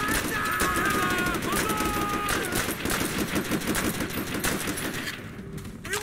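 Rapid gunfire crackles nearby.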